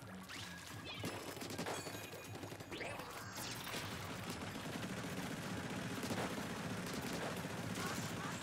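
Paint splats and bursts in a video game.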